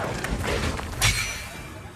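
A loud magical blast bursts with a roar.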